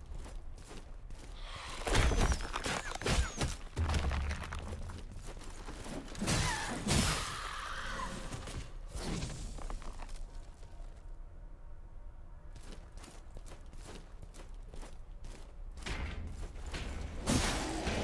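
Heavy footsteps clank on stone.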